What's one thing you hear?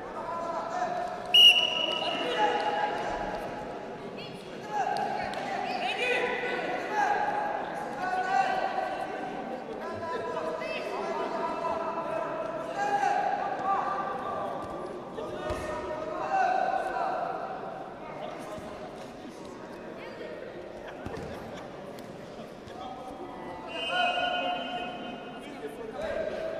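Men shout instructions loudly in an echoing hall.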